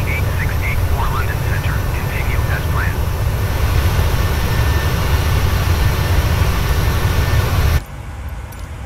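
A jet engine hums with a low, steady rumble.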